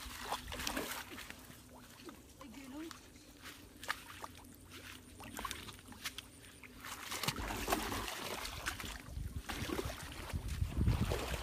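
Water splashes and sloshes underfoot.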